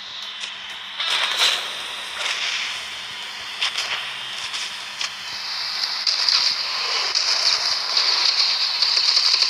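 Weapon shots fire in quick bursts.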